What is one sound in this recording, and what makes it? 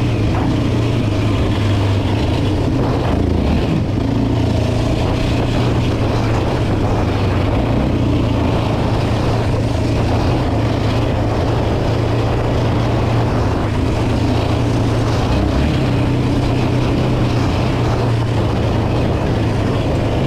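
Wind buffets the rider outdoors.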